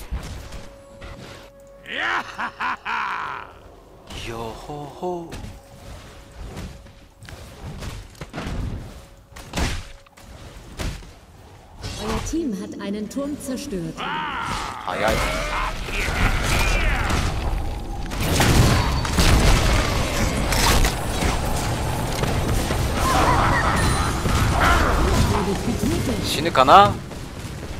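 Game combat effects clash and crackle.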